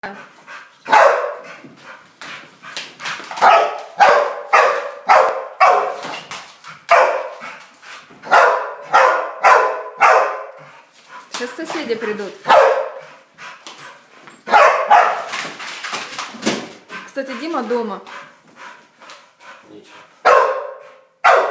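A dog barks loudly and repeatedly close by.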